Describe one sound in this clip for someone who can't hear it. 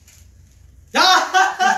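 Young men cheer loudly together.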